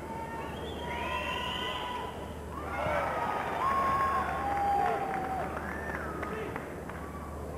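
A crowd whistles loudly.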